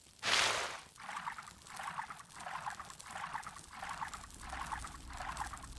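Footsteps splash rhythmically through shallow water.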